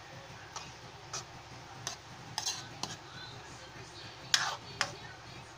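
A spatula scrapes and clacks against a pan.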